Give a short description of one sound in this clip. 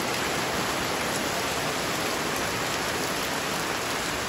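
Rainwater drips and splashes off a roof edge.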